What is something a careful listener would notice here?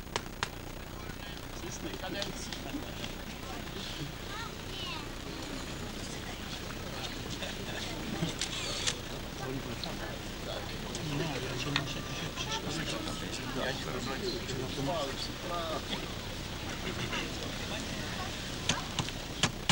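Men talk quietly nearby outdoors.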